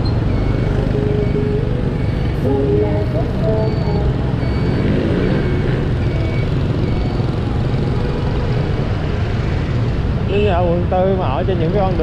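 Horns beep now and then from passing motorbikes.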